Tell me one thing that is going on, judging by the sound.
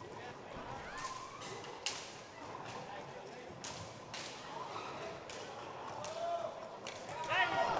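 Hockey sticks clack against a ball in a large echoing hall.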